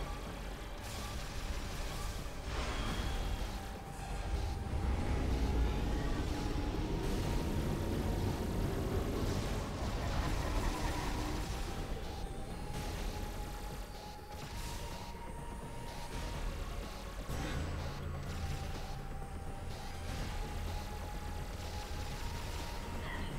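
Video game energy blasts fire and crackle.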